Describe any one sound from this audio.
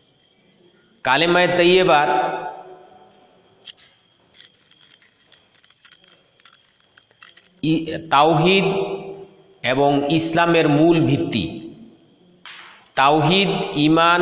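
A middle-aged man speaks calmly and closely into a clip-on microphone, with pauses between phrases.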